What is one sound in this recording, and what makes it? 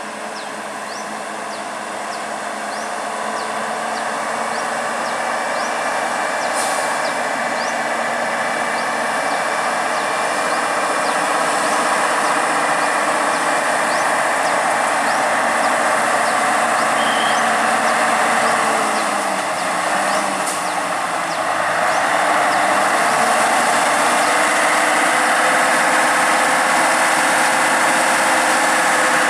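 A heavy truck engine rumbles and grows louder as it climbs closer.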